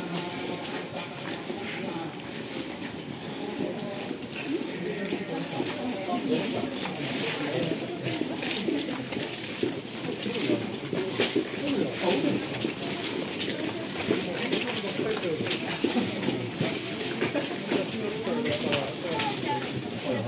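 Rain patters lightly on umbrellas overhead.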